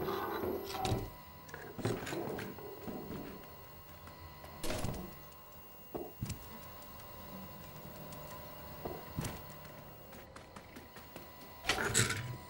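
Old computer equipment hums steadily.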